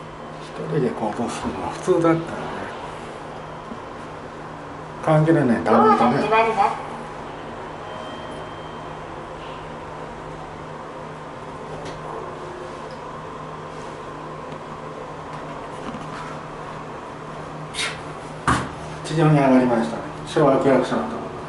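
A woman speaks close by, in short bursts.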